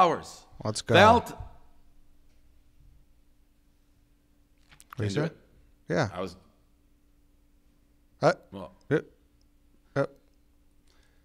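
A man speaks into a close microphone in short phrases with pauses.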